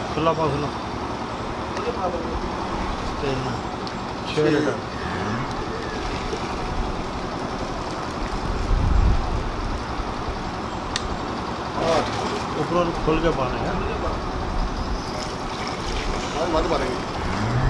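Milk splashes as it is poured into a metal can.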